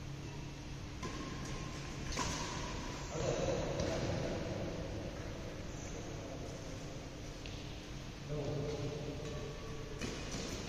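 Badminton rackets strike a shuttlecock in an indoor hall.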